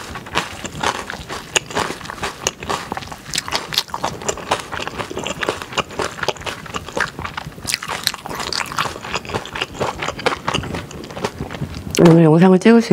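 A metal spoon scrapes and clinks against a steel bowl close to a microphone.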